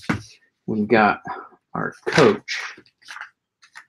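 Paper pages rustle as they turn.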